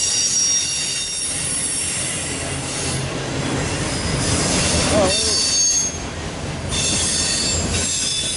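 Steel wheels clack over rail joints.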